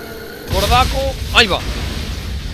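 A magical burst crackles and pops loudly.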